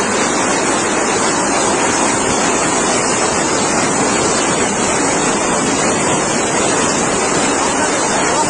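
Muddy floodwater rushes and roars loudly close by.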